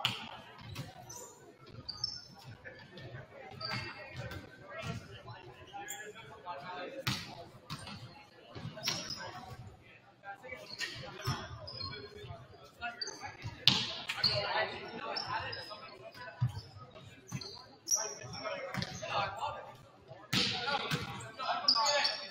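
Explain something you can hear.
A volleyball thumps as players hit it back and forth in a large echoing gym.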